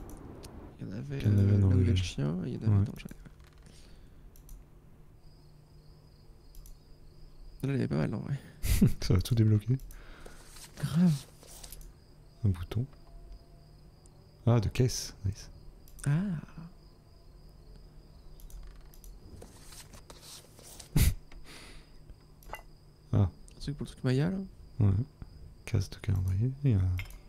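A man talks casually in bursts, close to a microphone.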